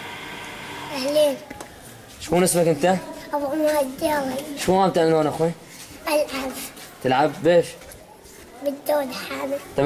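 A young child speaks close by in short bursts.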